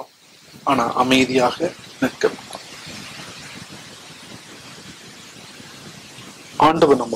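An elderly man speaks slowly and solemnly into a microphone, with pauses.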